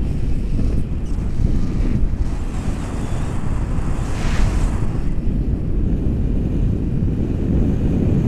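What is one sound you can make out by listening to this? Strong wind roars and buffets against a microphone.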